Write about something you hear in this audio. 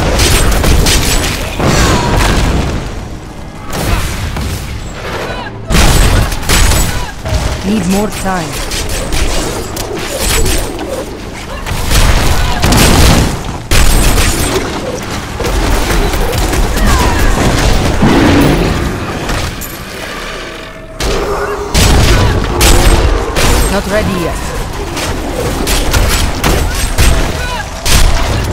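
Spells and weapons crash and blast in a fast game battle.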